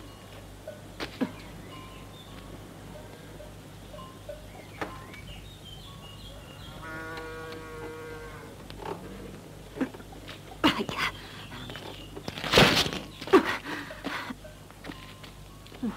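Wooden knocks and thuds sound close by.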